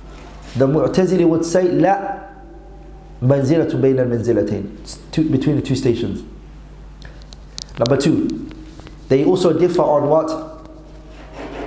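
A man speaks calmly into a microphone, in pauses.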